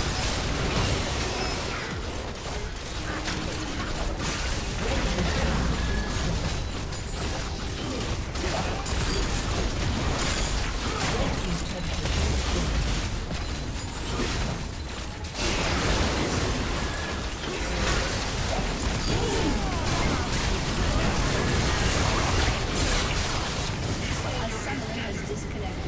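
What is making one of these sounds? Magic blasts and impacts crackle and burst in a busy fight.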